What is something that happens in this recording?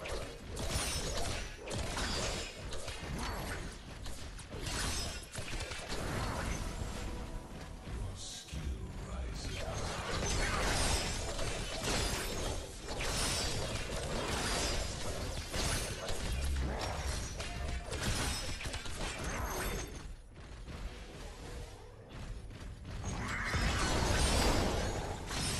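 Game weapons fire and blast in rapid bursts.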